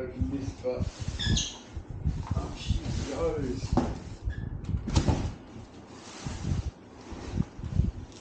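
Cardboard box flaps rustle and scrape as they are opened.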